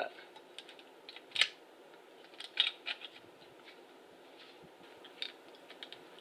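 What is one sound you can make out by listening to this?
Small metal parts click and knock as they are handled.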